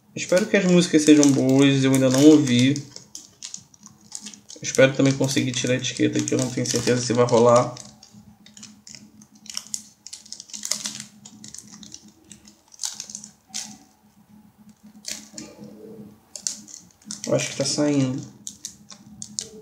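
Plastic wrap crinkles and rustles as hands peel it off.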